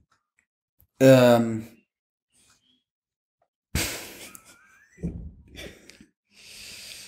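A young man talks and laughs close by.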